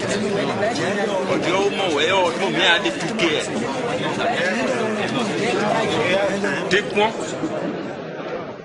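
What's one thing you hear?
A crowd of men murmurs and talks over one another.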